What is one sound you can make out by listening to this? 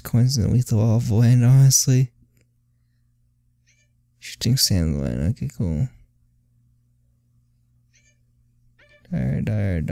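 A short game menu blip sounds as the selection changes.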